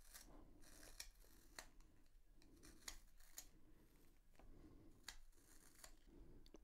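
A plastic sharpener clicks and taps close by.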